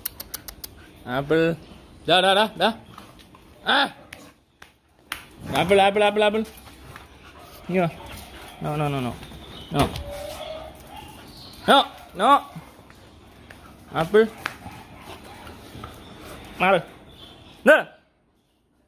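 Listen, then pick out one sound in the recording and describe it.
Dogs bark and yelp close by.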